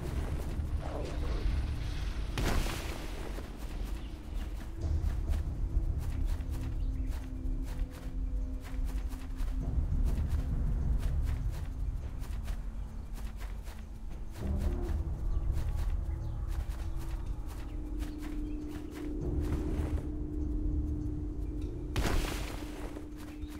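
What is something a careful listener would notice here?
A pick strikes rock with sharp knocks.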